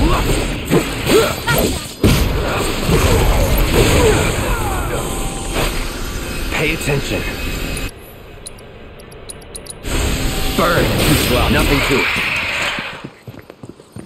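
Sword blades slash and clash in a fast fight.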